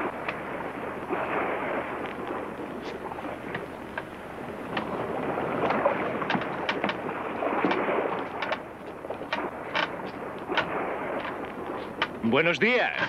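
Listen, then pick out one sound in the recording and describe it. Sea waves wash and splash against a small boat.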